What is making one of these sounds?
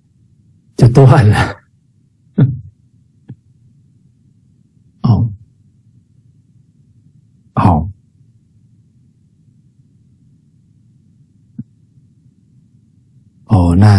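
A middle-aged man speaks warmly in short bursts over an online call.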